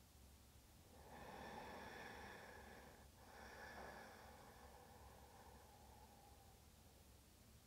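A harmonium drones softly.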